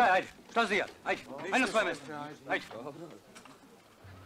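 Several men talk close by.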